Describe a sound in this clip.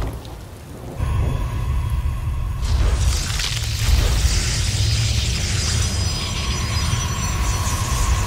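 Video game battle effects rumble and crackle steadily.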